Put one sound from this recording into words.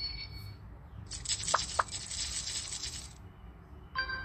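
Chips clink and rattle onto a table.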